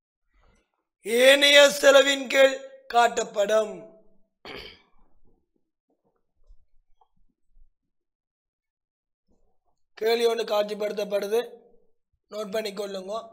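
A man explains with animation, close to a microphone, pausing between phrases.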